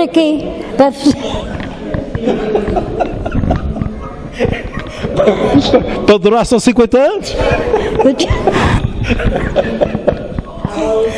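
An elderly woman speaks and laughs.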